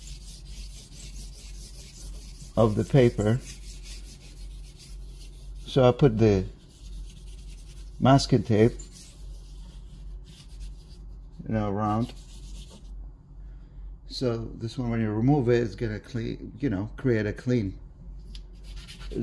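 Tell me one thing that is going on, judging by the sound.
Charcoal scratches and scrapes across paper.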